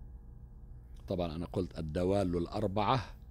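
A middle-aged man speaks calmly into a microphone, close by.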